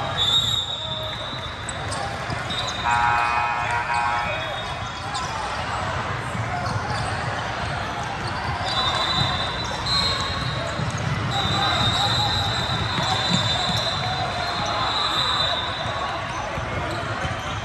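A crowd chatters throughout a large echoing gym.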